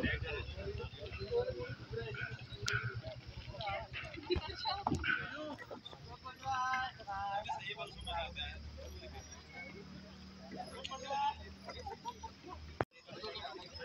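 Children and adults talk and call out nearby outdoors.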